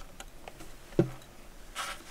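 A metal tool knocks once against wood.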